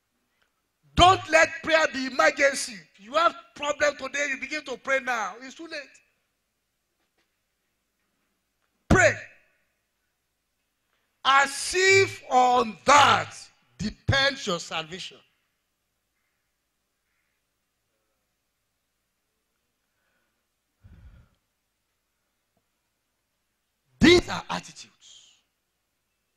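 A man preaches with animation through a microphone and loudspeakers, in bursts with long pauses.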